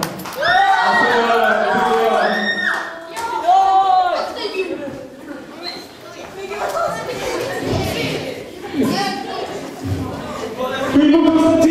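A young man sings loudly into a microphone through loudspeakers.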